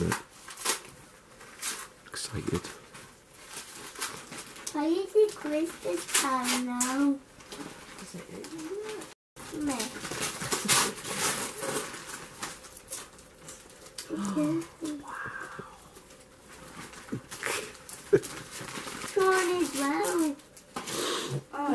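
Wrapping paper rustles and tears as a small boy unwraps a gift.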